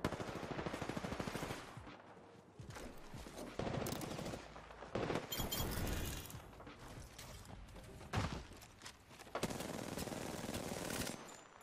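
Rapid gunfire from a video game bursts out in quick volleys.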